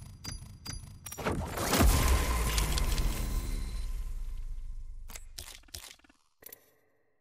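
A deep whoosh swells and slowly fades.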